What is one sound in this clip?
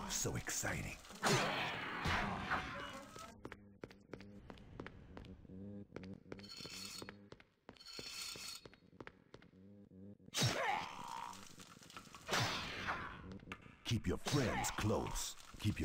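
Blows land with heavy thuds and slashes in a fight.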